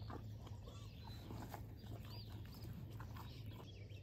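A yak licks and slurps from a metal bowl.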